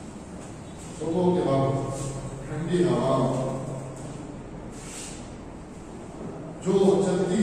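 A man speaks slowly and clearly, as if teaching.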